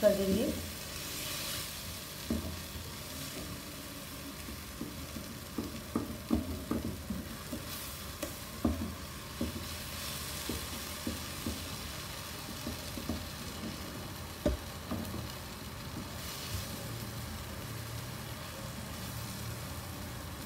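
A wooden spatula scrapes and taps against a pan while stirring thick food.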